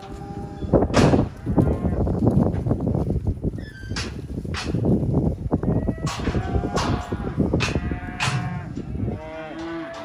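Cattle hooves thud and shuffle on soft dirt.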